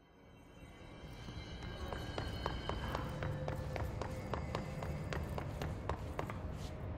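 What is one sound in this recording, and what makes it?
Quick footsteps run across a hard floor.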